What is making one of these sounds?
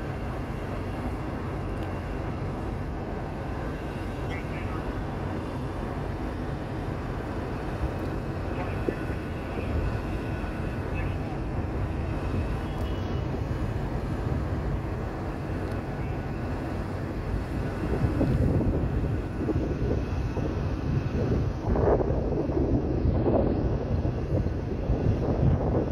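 A distant city hums steadily far below.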